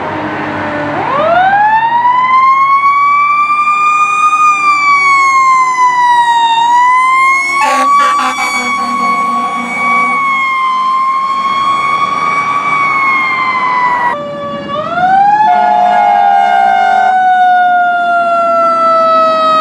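A fire engine's siren wails, rising and falling.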